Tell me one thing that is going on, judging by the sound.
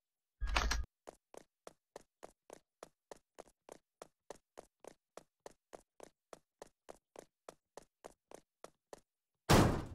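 Quick, even footsteps tap on a hard floor.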